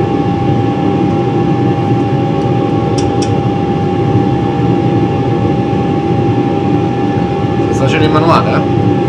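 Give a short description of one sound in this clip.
A steady low engine roar fills a cockpit.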